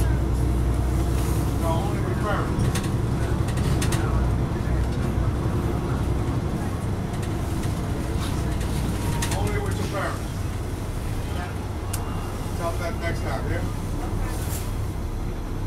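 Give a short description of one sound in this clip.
Bus tyres roll over the road.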